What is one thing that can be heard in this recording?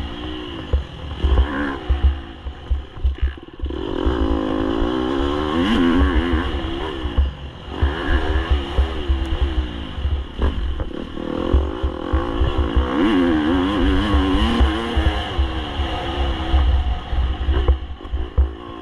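A motorbike engine revs up and down as it rides over dirt.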